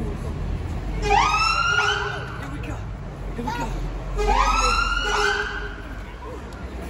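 A fire engine siren whoops loudly twice nearby.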